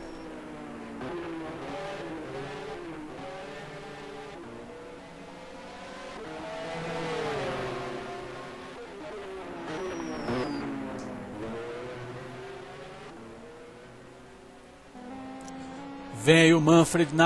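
A racing car engine roars, its pitch rising and falling as it speeds by.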